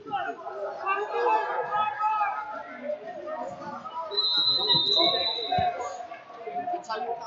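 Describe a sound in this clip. Spectators and coaches shout and call out in an echoing gym.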